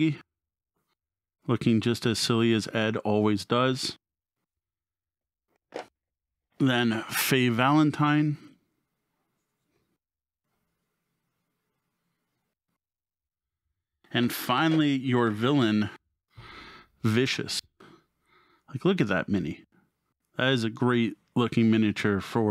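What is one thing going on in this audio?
A man speaks calmly and closely into a microphone, in bursts with pauses.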